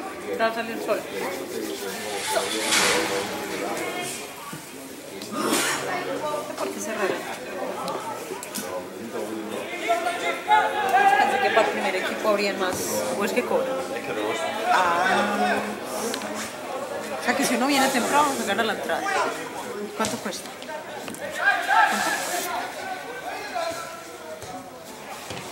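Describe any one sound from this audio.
Football players shout to each other across an open pitch.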